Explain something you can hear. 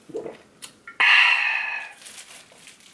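A young man lets out a satisfied exclamation.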